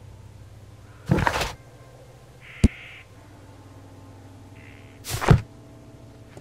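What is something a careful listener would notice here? Paper pages flip with a quick swish.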